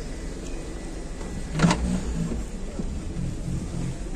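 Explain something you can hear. A car boot lid clicks open.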